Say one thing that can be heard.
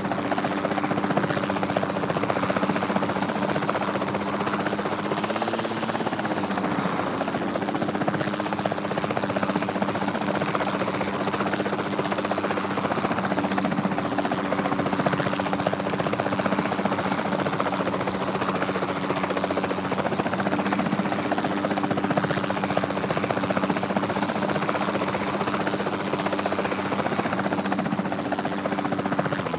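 A helicopter's rotor and engine drone steadily.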